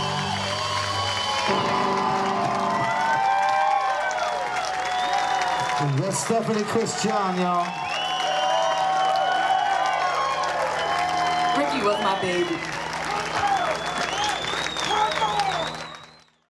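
A woman sings loudly through a microphone.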